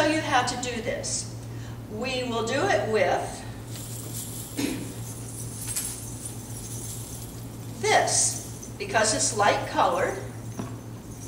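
An older woman talks with animation.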